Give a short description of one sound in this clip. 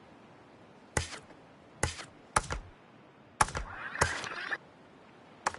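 Short electronic menu clicks sound several times in quick succession.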